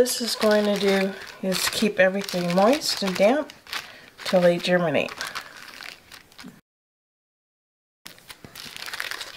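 A plastic zip bag crinkles as hands handle and press it.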